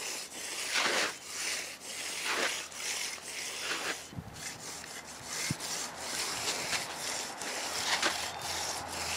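A hand tool scrapes along wet concrete in repeated strokes.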